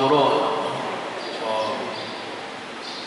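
A man speaks calmly into a microphone, heard through loudspeakers in a large echoing hall.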